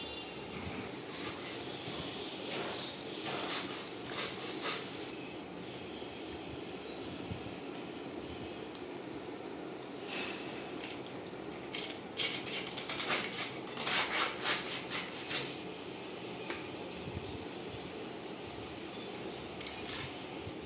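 A blade scrapes and slices through fish flesh with wet squelching sounds.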